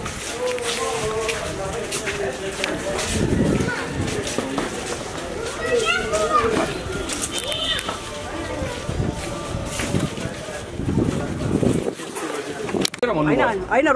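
Several people talk at once outdoors in a crowd.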